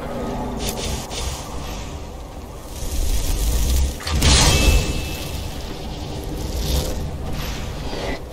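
A magic spell crackles and hums.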